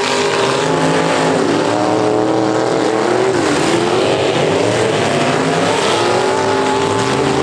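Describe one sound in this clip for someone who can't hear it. Several car engines roar and rev loudly throughout.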